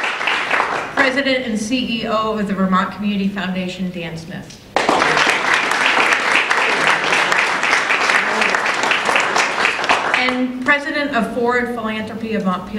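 An elderly woman speaks calmly into a microphone.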